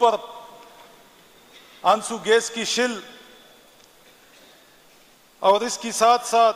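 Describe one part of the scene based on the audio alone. A middle-aged man recites in a slow chanting voice through a microphone, with pauses between phrases.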